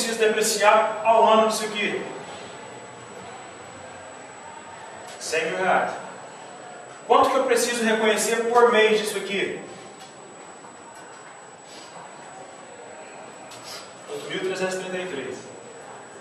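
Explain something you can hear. A man speaks in bursts with pauses.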